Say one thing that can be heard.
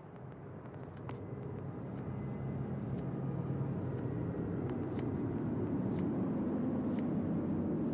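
A game countdown timer ticks with short, sharp clicks.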